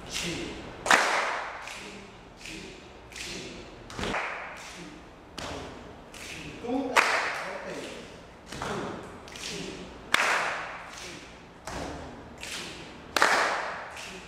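A man claps his hands sharply.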